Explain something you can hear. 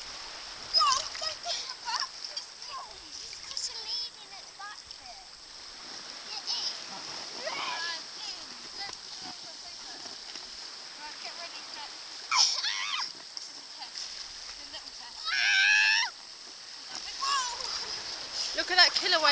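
Young children shout and squeal excitedly outdoors.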